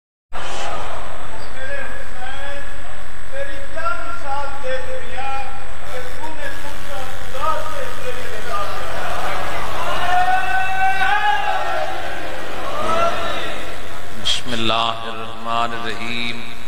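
A man chants with feeling into a microphone, heard through loudspeakers in an echoing space.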